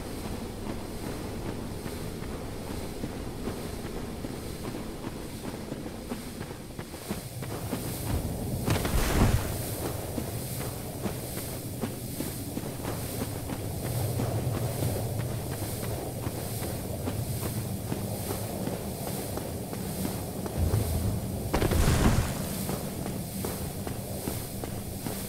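Heavy armoured footsteps thud steadily on wood and stone.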